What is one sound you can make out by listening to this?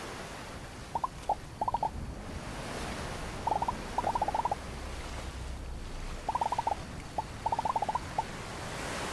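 Quick high electronic chirps sound in short bursts.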